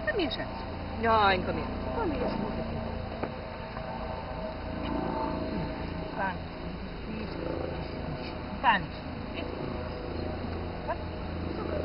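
A woman speaks softly to a dog.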